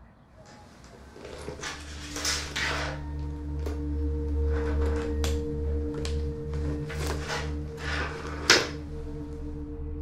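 Objects rustle and click while being handled close by.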